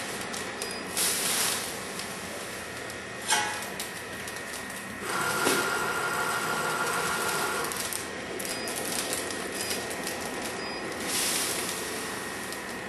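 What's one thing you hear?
Powder pours with a rushing hiss into a plastic bag.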